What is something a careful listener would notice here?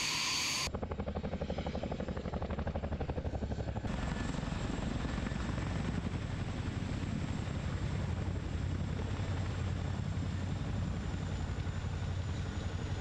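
A helicopter's engine roars steadily.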